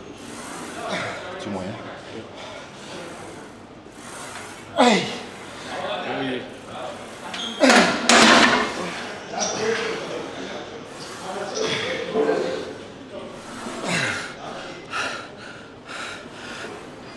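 A man grunts and strains with effort.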